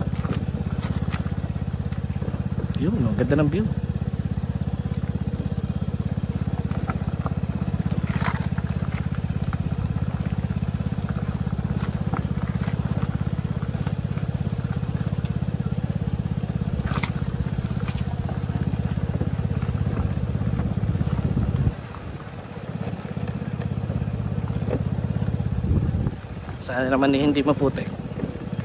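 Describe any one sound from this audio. A motorcycle engine hums steadily, close by.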